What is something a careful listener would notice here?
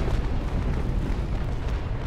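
Cannons boom.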